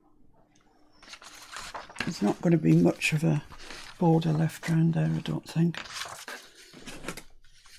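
Paper rustles and slides as a sheet is moved.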